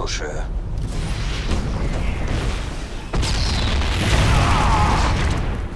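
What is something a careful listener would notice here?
Gunfire and explosions rumble in a battle.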